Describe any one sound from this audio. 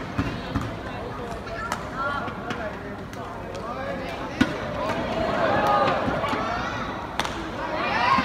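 Badminton rackets strike a shuttlecock with sharp pops in a large echoing hall.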